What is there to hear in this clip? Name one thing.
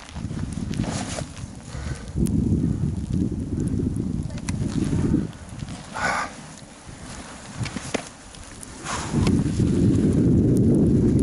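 Wind gusts roar outdoors, buffeting loudly in bursts.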